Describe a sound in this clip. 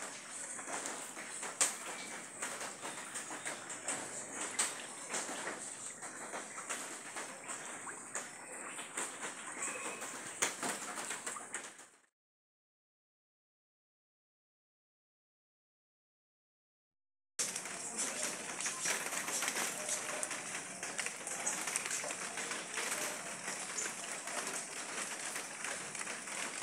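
Rain patters steadily on standing floodwater outdoors.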